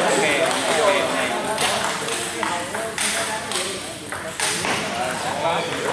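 A table tennis ball clicks sharply against paddles and the table.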